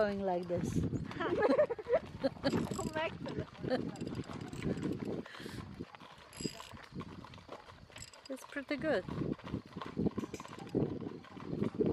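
Carriage wheels rumble and rattle on gravel.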